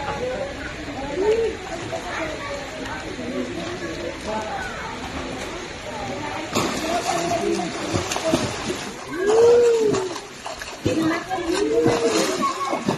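A young child squeals with high excitement.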